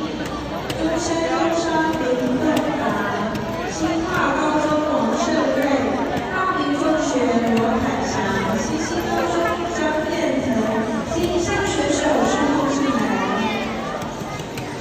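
A group of young girls chants loudly together nearby in a large echoing hall.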